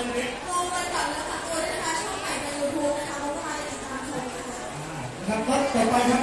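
A woman speaks through a microphone over loudspeakers in a large echoing space.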